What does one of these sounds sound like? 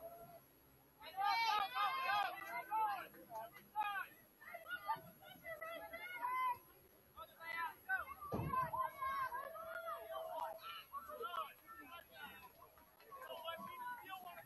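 Young players shout and call out to each other across an open field.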